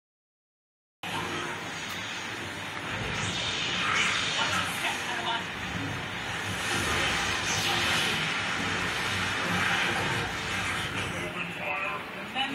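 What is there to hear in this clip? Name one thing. Music plays from a television.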